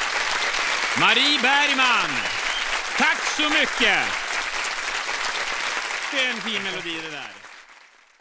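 People in an audience whoop and cheer.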